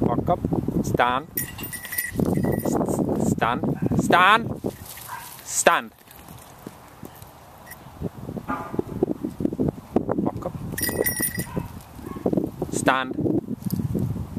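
A dog lets out high whining yelps.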